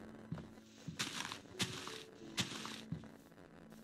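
Leaves rustle as an axe chops at them.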